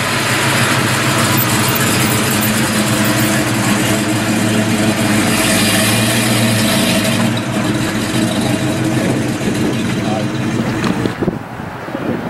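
A car engine rumbles loudly as the car drives slowly past and away.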